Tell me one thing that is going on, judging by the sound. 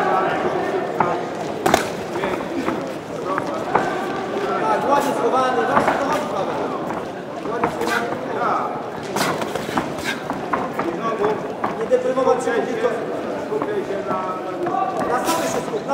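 Boxing gloves thud against a body and head in quick punches.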